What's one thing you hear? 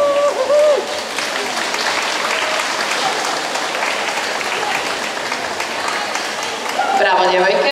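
Water splashes as swimmers move together in an echoing indoor pool.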